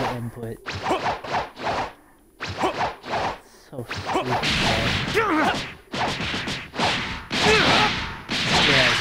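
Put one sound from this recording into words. Punches and kicks land in quick, heavy blows.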